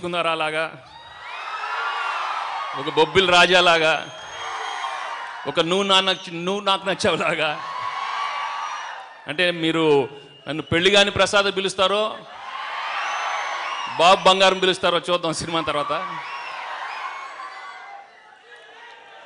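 A large crowd cheers and shouts in a large echoing hall.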